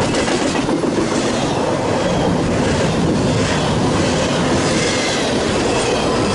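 A long freight train rumbles past close by, its wheels clattering and squealing on the rails.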